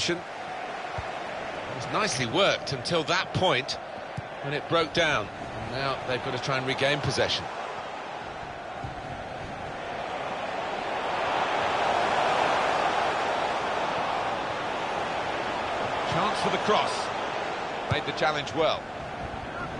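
A stadium crowd roars steadily, swelling and easing off.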